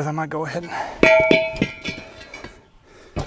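A steel wheel rim clanks and rings as it is lifted.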